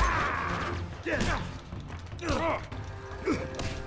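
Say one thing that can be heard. A man grunts while fighting at close range.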